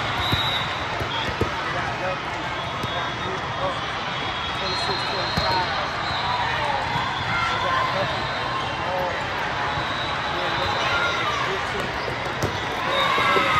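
A volleyball is hit with sharp smacks in a large echoing hall.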